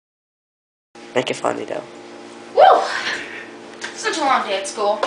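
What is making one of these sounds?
A young boy talks close by.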